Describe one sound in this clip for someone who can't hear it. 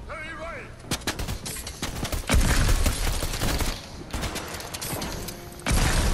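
Game gunshots crack in rapid bursts.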